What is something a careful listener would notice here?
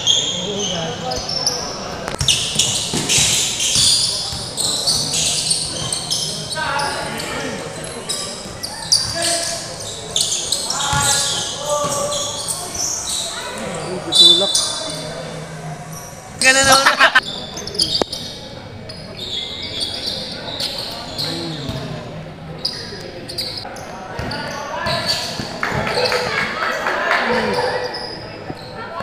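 Spectators chatter and shout in an echoing hall.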